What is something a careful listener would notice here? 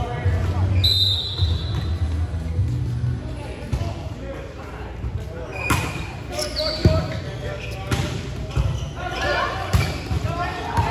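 Sneakers squeak on a wooden floor.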